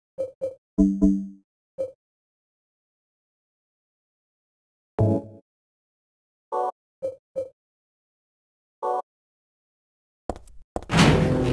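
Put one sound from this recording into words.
Short electronic blips sound as menu items are chosen.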